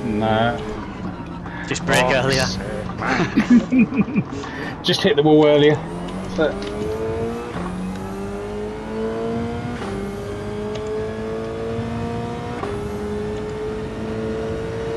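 A race car engine roars and revs up through the gears.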